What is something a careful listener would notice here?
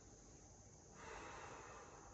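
A young woman breathes out audibly.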